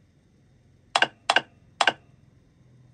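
A finger taps a glass touchscreen.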